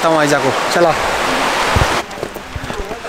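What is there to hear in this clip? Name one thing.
A river rushes nearby.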